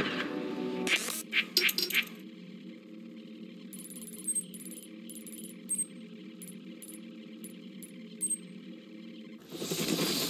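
Short electronic beeps and clicks sound from a menu.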